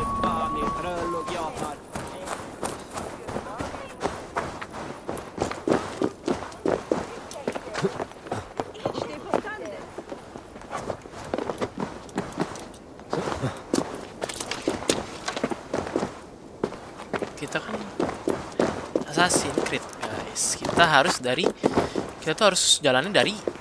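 A young man talks casually into a microphone, close up.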